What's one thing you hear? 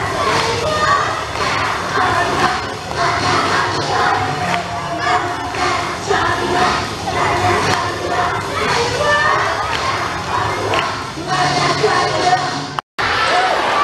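A man sings loudly through a microphone in a large hall.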